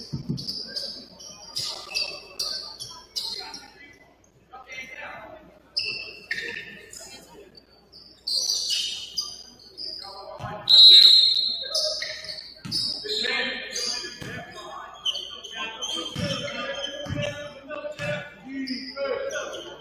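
Sneakers squeak on a hardwood court in an echoing gym.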